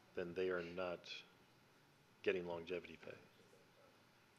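A man speaks briefly into a microphone, in short bursts with pauses.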